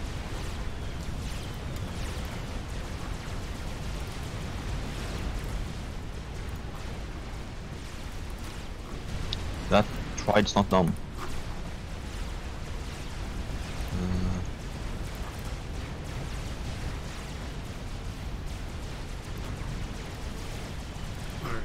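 Distant gunfire and small explosions crackle steadily.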